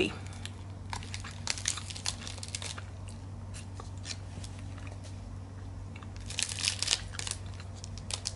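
A wrapper crinkles.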